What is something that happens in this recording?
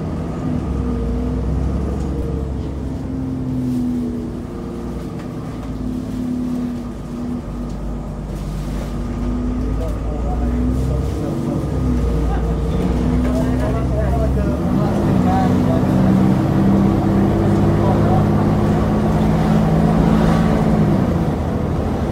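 The bus rattles and creaks over the road.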